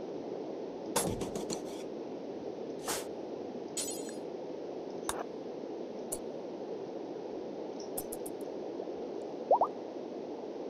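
Game interface clicks sound several times.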